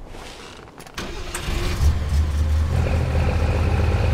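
An off-road buggy engine starts and revs.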